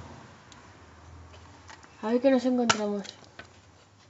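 A plastic case snaps open.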